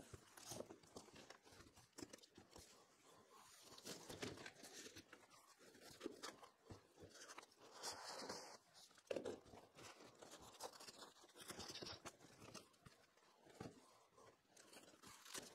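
Cardboard rustles and scrapes as a man unpacks a box.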